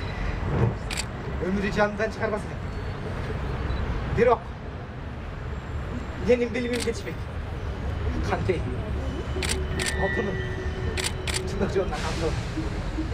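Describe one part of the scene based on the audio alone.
Women talk and call out softly outdoors, a little way off.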